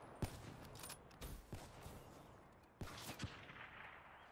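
Gunshots crack sharply in quick bursts.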